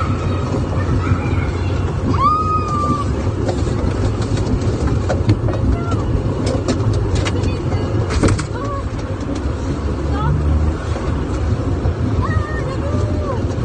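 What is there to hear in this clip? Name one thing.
An arcade driving game plays loud electronic sounds with short whistling tones.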